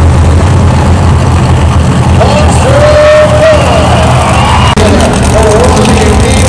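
A monster truck engine roars loudly and rumbles deeply.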